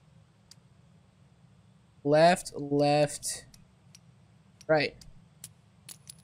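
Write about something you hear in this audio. Metal switches on a padlock click.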